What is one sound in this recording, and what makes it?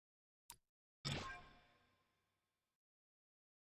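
A bright chime rings and fades.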